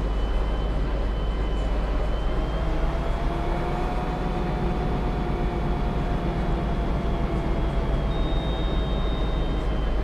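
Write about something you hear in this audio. A bus engine hums and whines steadily as the bus drives along.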